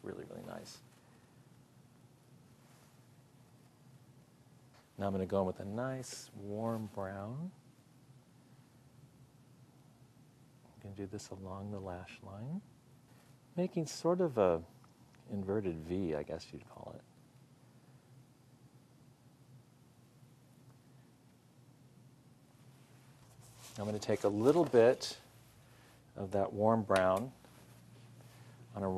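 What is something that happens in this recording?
A woman talks calmly and close by, in short bursts.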